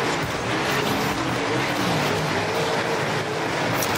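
Tyres skid and scrape on loose dirt.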